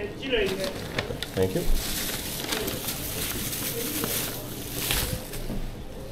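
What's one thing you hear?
A plastic bag crinkles as it is handed over.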